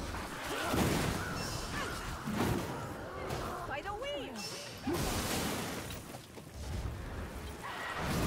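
Fire blasts roar and crackle from a staff.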